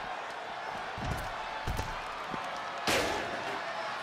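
A wrestler's body slams hard onto the floor with heavy thuds.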